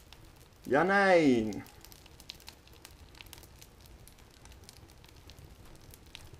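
A fire crackles and pops softly.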